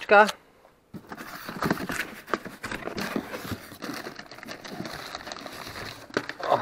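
Cardboard flaps rustle and scrape as a box is opened by hand.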